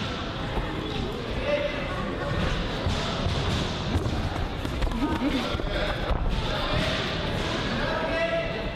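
Boxing gloves thud against each other in quick punches.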